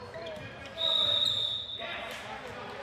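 A referee's whistle blows sharply in an echoing gym.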